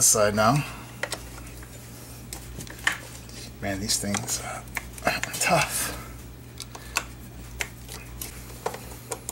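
A screwdriver clicks and scrapes against a metal casing.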